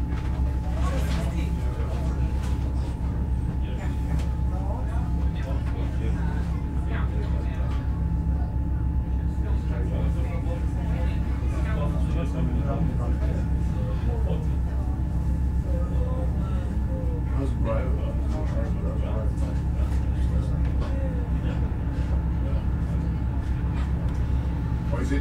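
A steady low hum fills a large echoing underground hall.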